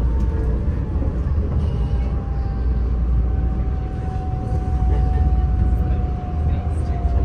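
A train rumbles steadily along a track, heard from inside.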